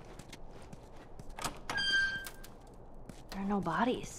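A door swings open.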